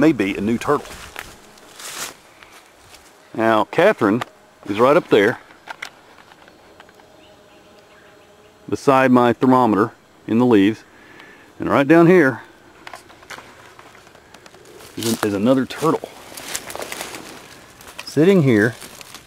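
A man speaks calmly in short phrases close by.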